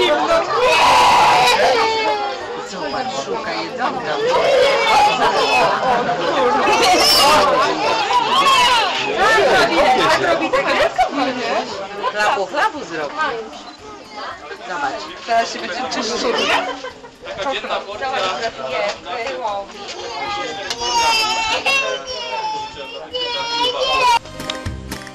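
A crowd of children chatters and shouts excitedly nearby.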